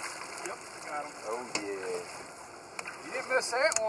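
Water splashes as a net scoops up a fish.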